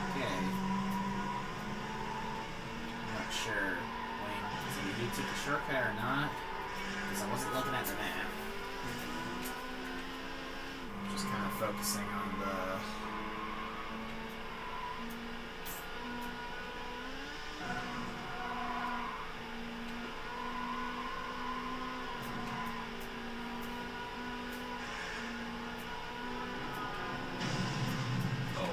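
A racing car engine roars and whines through a video game's speakers, rising and falling as it shifts gears.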